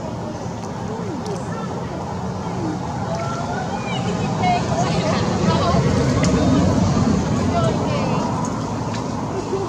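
A baby monkey squeaks and cries in high, thin calls.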